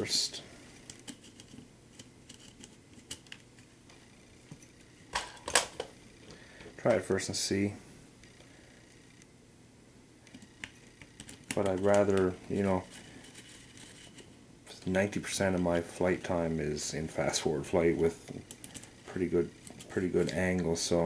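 Small plastic parts click and tap as they are handled.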